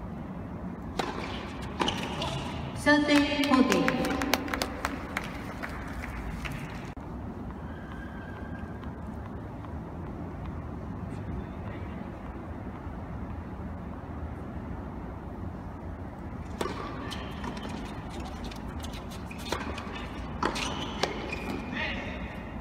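Tennis balls are struck sharply with rackets, echoing in a large hall.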